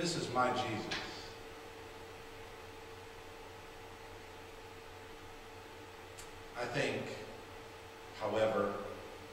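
A man speaks slowly and calmly into a microphone, with long pauses, in a room with some echo.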